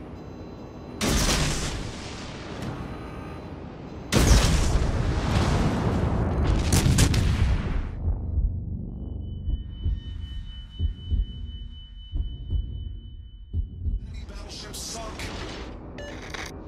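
Heavy naval guns fire in loud booming blasts.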